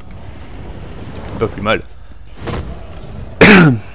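A magic spell bursts with a sharp whoosh.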